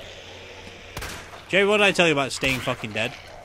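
A pistol fires single shots.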